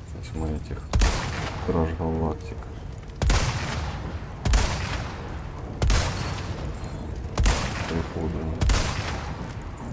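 Rifle shots ring out, one after another, each with a rolling echo.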